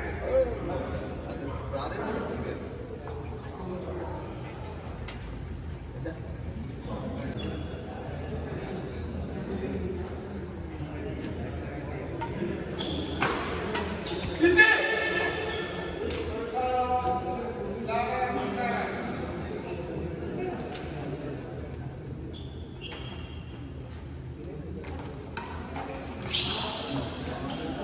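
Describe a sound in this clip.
Shuttlecocks are struck with rackets in sharp pops, echoing in a large hall.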